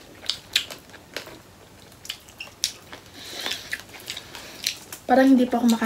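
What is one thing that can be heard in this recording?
Foil crinkles and rustles as food is handled.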